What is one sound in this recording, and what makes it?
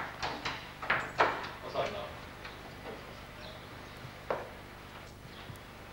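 A door latch clicks as a door is opened.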